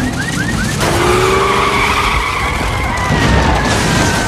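A car engine roars as the car speeds away.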